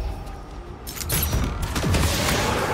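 A magical blast bursts with a loud crackling roar.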